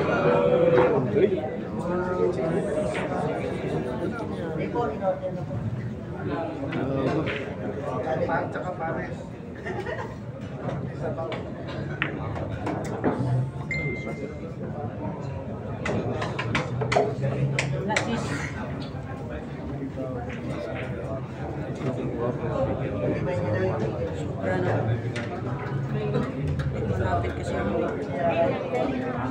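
A crowd murmurs and chatters throughout an echoing hall.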